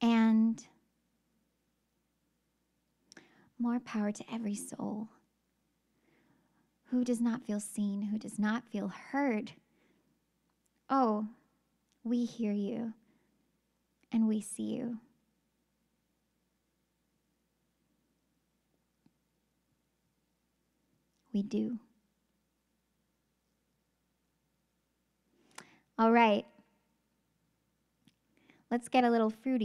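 A young woman speaks calmly into a close microphone, in short bursts with long pauses.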